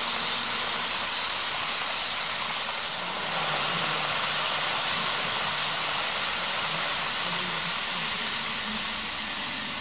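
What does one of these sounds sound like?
A model train rumbles and clatters steadily along its track.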